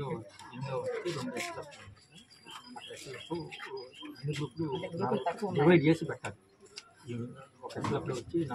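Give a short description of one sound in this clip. A young man talks, asking questions nearby.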